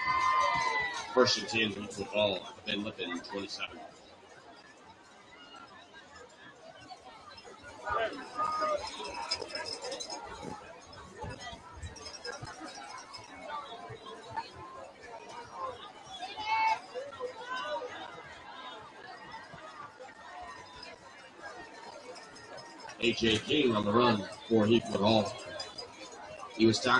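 A crowd of spectators chatters outdoors.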